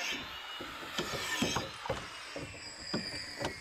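Hammer blows knock on wood nearby, outdoors.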